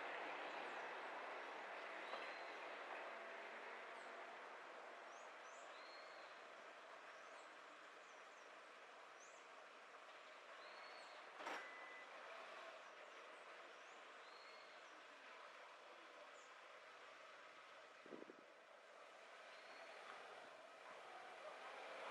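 A car drives slowly along a quiet street, tyres rolling softly on the road.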